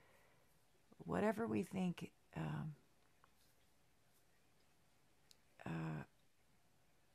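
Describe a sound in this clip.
A young woman speaks calmly and close up, in short phrases.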